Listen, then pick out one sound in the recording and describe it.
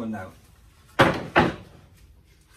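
A wooden board knocks against a workbench.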